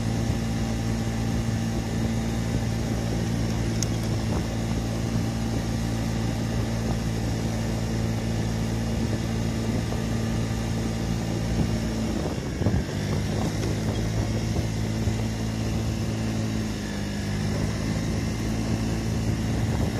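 A scooter engine hums steadily at close range.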